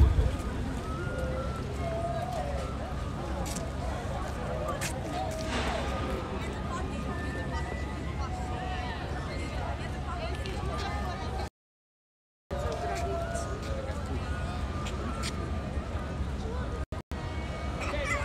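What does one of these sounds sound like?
A crowd of men and women chatters outdoors at a distance.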